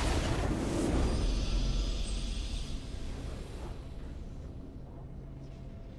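A triumphant fanfare swells and rings out.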